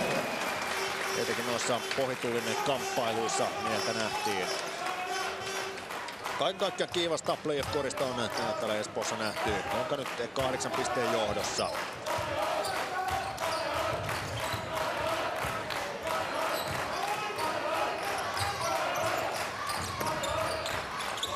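A large indoor crowd murmurs and cheers in an echoing hall.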